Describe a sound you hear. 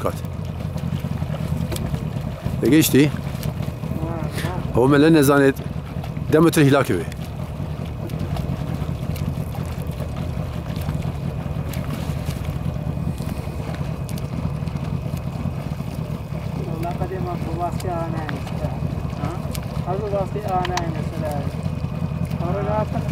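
A swimmer splashes steadily through calm water with rhythmic arm strokes.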